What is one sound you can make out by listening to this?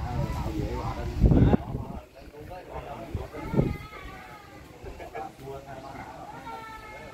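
Several men talk casually nearby.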